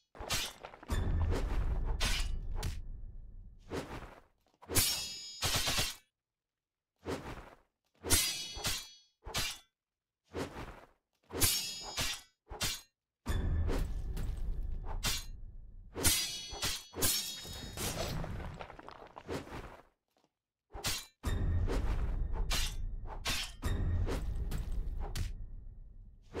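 Magic blasts boom with deep rumbling.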